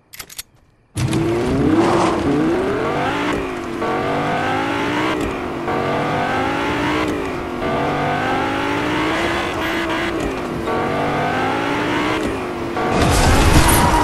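A car engine revs hard, rising and falling in pitch as the car speeds along.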